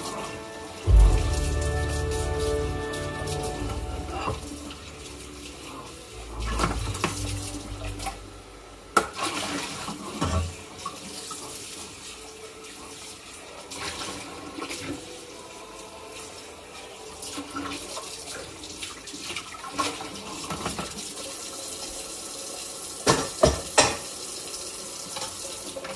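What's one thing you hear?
Metal utensils and pots clink and clatter nearby.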